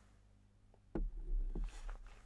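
A glass knocks down onto a table.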